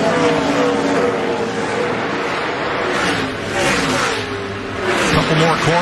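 Race car engines roar loudly at high speed.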